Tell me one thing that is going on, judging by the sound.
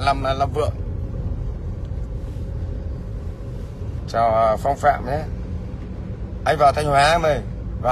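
A middle-aged man speaks close to a phone's microphone, in short bursts.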